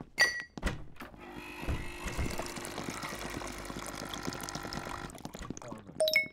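A coffee machine hums while pouring coffee.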